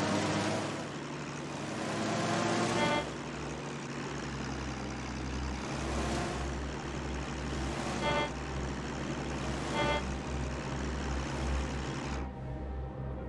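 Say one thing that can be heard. Propeller aircraft engines drone steadily.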